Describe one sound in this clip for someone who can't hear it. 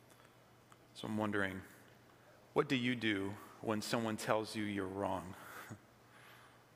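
A man speaks calmly into a microphone in a large, echoing hall.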